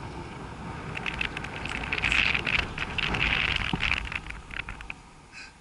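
A chairlift clatters and creaks as it passes over a lift tower.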